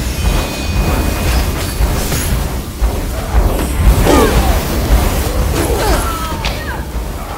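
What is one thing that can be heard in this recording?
Swords clash and magic bursts crackle in a fast fight.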